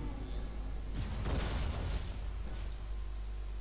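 A fiery blast whooshes and roars briefly.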